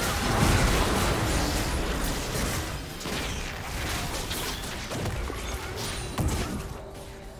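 Video game spell and hit effects crackle and burst during a fight.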